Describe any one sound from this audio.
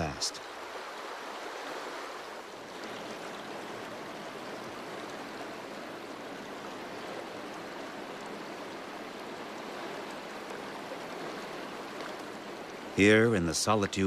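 A river rushes steadily.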